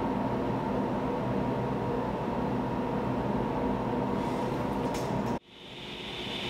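A table saw motor runs with a steady whir.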